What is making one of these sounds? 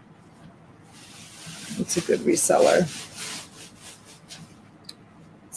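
Fabric rustles as clothing is handled.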